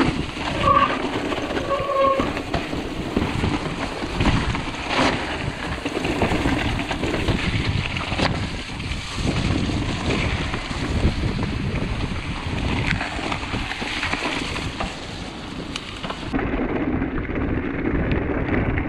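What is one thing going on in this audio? Wind buffets loudly against a close microphone.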